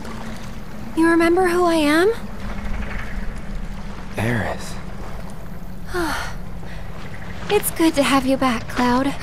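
A young woman speaks softly and warmly.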